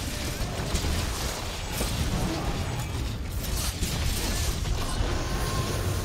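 Fire blasts and explodes with deep booms.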